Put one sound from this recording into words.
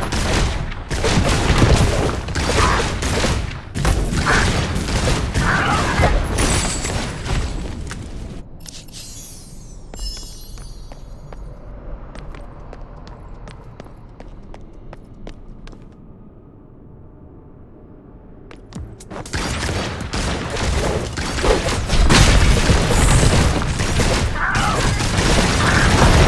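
Sword slashes and magic blasts crash in a game battle.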